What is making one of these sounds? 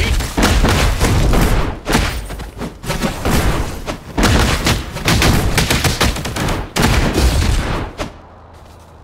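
Swords clash and slash in rapid bursts, with heavy booming impacts.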